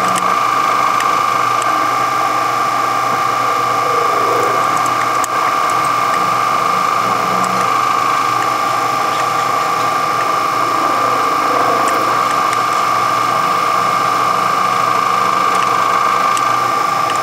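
A milling machine whines steadily as its cutter grinds into metal.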